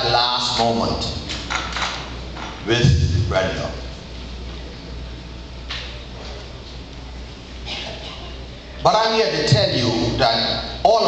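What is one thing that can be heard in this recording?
A man preaches with animation through a microphone, echoing in a large hall.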